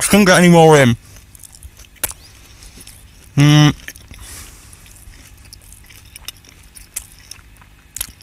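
A man chews food with soft crunching sounds close to a microphone.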